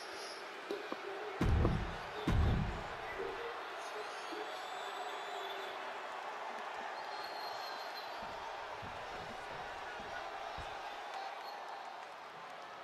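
A large crowd cheers steadily in a big echoing arena.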